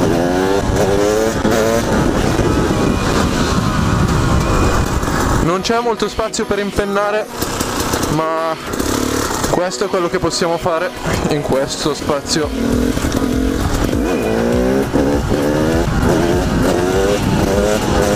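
A motorcycle engine revs up and down loudly, close by.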